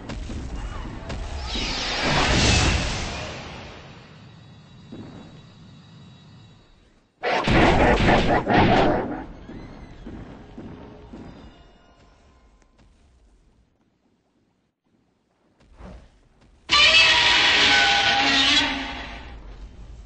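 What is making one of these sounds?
Giant monsters roar loudly in bursts.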